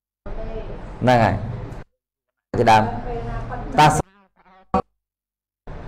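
A young man speaks with animation through a microphone, heard over a loudspeaker.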